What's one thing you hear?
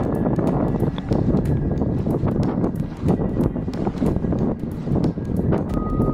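A sail flaps and rattles in the wind.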